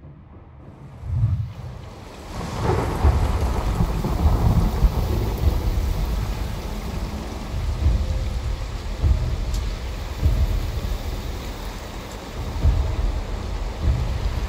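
Thunder rumbles deeply and keeps rolling.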